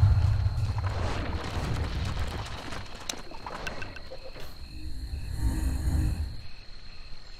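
Fantasy game battle effects clash and rumble.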